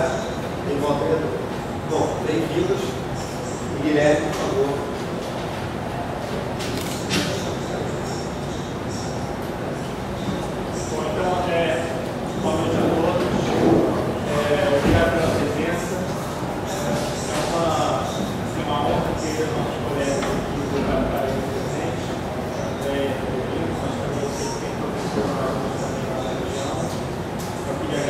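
A man speaks to an audience in a slightly echoing room, heard from a distance.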